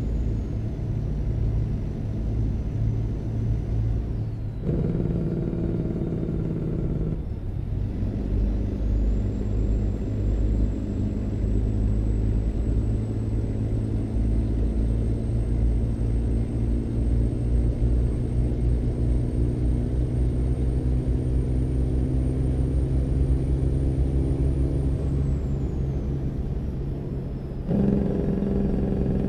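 A truck engine rumbles steadily and shifts through gears as it drives.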